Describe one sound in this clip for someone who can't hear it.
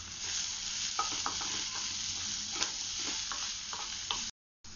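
A wooden spatula scrapes and stirs in a metal pan.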